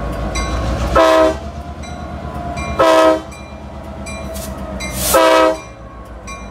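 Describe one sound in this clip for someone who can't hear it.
A diesel locomotive horn blasts three times up close.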